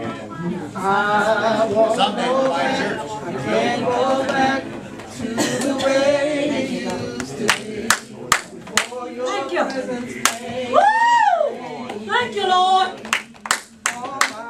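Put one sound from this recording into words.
A congregation of men and women call out and pray aloud together.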